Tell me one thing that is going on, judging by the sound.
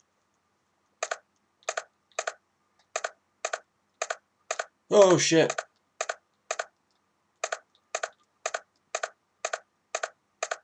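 Footsteps tap at an even pace on a hard floor.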